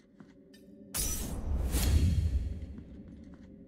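A blade swishes through the air with a heavy hit.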